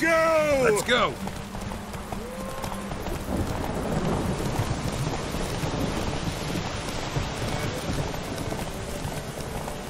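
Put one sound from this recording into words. A horse's hooves gallop on a dirt road.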